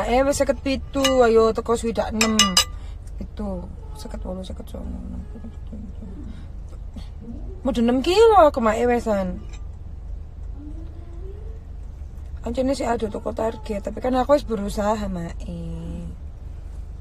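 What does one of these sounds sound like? A young woman sings softly close by.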